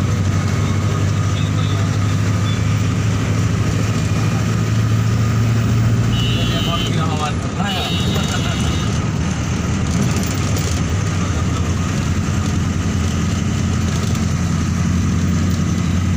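A bus engine hums steadily with road rumble throughout.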